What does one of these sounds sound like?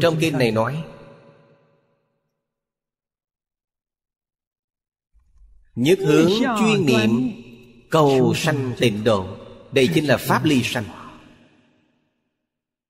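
An elderly man speaks calmly and warmly into a close microphone, with pauses between phrases.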